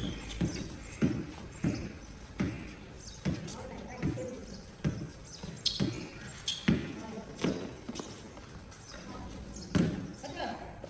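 A basketball bounces repeatedly on a hard outdoor court.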